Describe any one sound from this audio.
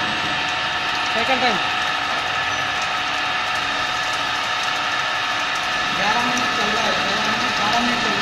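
A milling cutter whines steadily as it cuts into metal.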